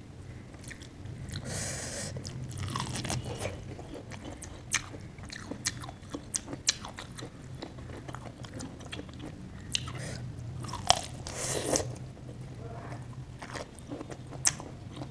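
Soft food squishes wetly between fingers.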